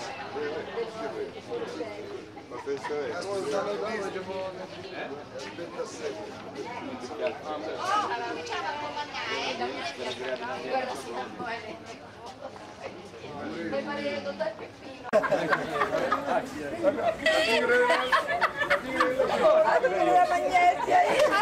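A crowd of men and women chatter all around outdoors.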